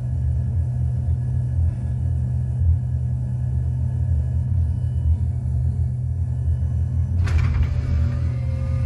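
A jet engine rumbles steadily with a low drone.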